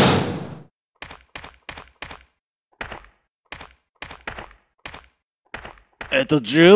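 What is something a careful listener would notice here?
Footsteps tap on stone at a steady walking pace.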